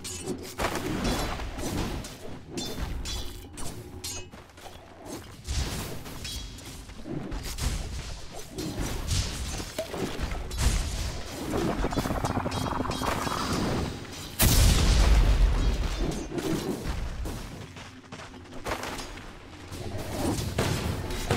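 Video game fight sounds clash, whoosh and burst, with a loud blast partway through.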